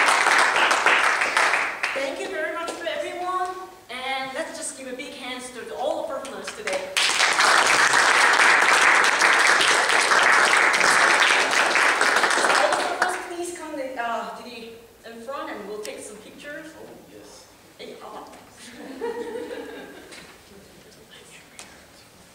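A young woman speaks to an audience in an echoing hall.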